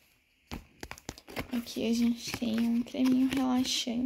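A cardboard box is opened.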